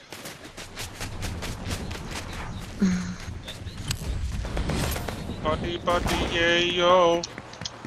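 Footsteps patter quickly on stone paving.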